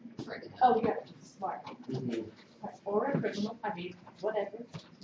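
A woman lectures calmly through a microphone.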